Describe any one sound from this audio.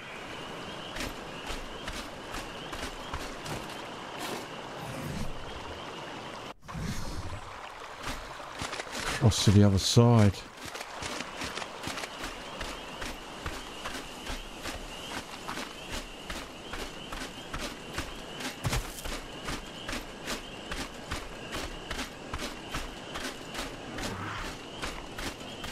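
Footsteps tread steadily over sand and through undergrowth.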